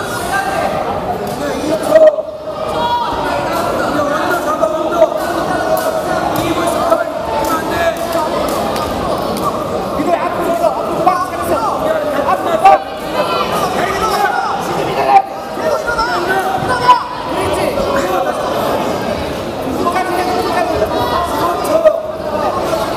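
A crowd of spectators shouts and chatters in a large echoing hall.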